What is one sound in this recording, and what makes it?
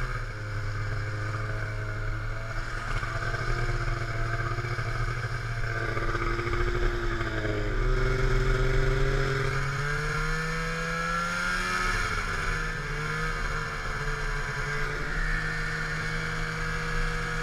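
A snowmobile engine drones steadily, rising and falling in pitch.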